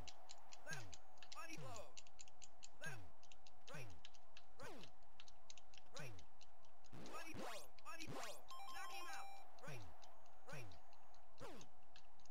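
Video game punches land with sharp falling electronic thuds.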